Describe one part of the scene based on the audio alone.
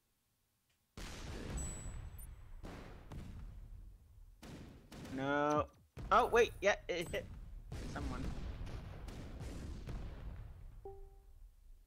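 Explosions boom and rumble in a video game.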